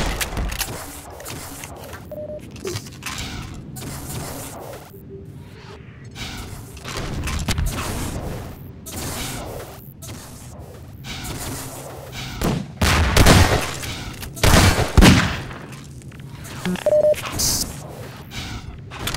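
Footsteps clatter quickly across hard floors and metal stairs.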